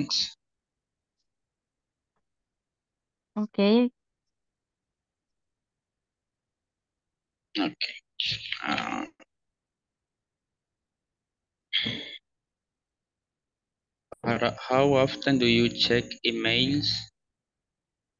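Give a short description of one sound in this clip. A woman speaks briefly and in short bursts over an online call.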